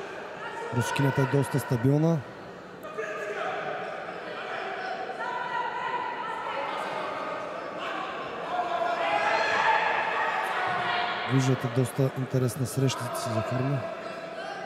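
A crowd cheers and shouts throughout a large echoing hall.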